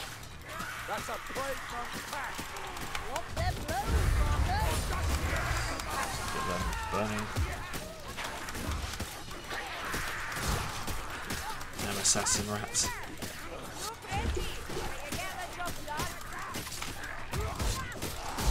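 Guns fire sharp shots.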